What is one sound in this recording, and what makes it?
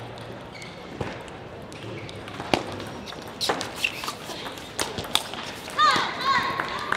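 A table tennis ball clicks back and forth on the table and paddles.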